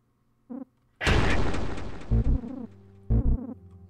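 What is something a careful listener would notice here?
A loud harsh electronic crash sounds and then fades.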